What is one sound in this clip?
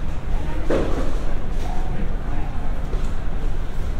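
Footsteps echo on a hard floor in a long corridor.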